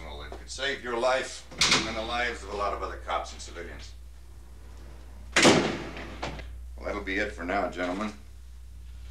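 A man speaks firmly to a room, close by.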